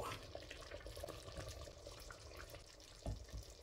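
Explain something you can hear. A wooden spoon scrapes and stirs thick food in a metal pot.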